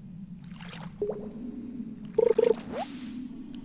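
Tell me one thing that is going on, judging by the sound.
A fishing line whips out with a quick swish.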